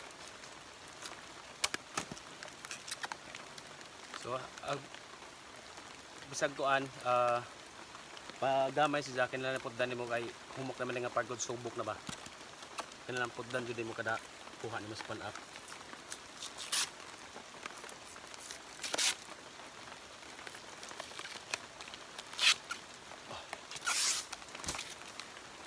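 A knife scrapes and slices through soft plant stalk.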